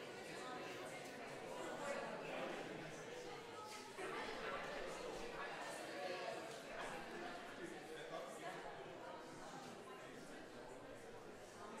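A crowd of men and women chatters and murmurs in a large echoing hall.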